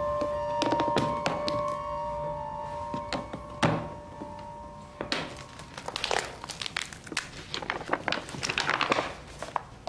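Stiff parchment pages rustle and crackle as a hand turns them.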